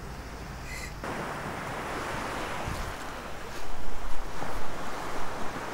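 Small waves wash onto a sandy beach.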